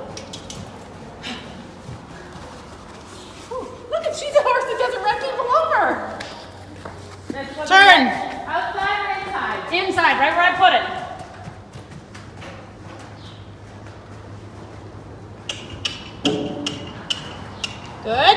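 Hooves thud softly on soft ground.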